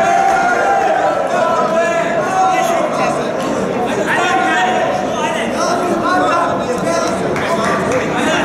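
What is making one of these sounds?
A crowd of spectators chatters and cheers loudly in a large echoing hall.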